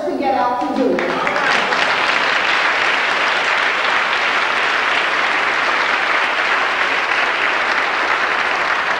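A choir claps.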